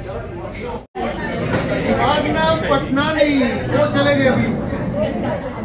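An elderly man speaks to a young girl nearby.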